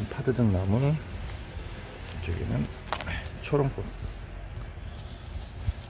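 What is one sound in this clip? Leaves rustle as a hand grabs and pulls at plants.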